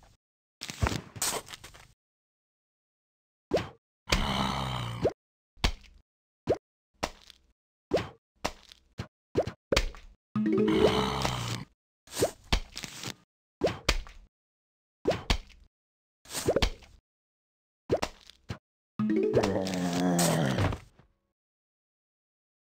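Small pops sound as cartoon plants are set into the ground.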